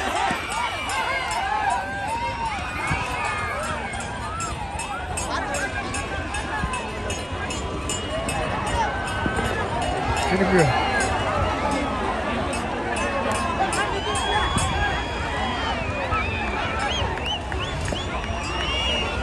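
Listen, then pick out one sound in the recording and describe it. Whistles shrill among the crowd.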